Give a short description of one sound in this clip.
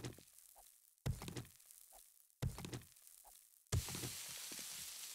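An axe chops into a block with sharp thuds.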